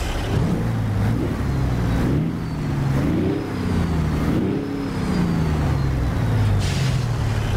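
A truck engine rumbles and revs up and down.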